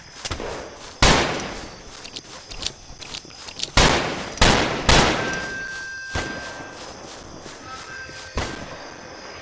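Gunshots ring out with a long, echoing boom.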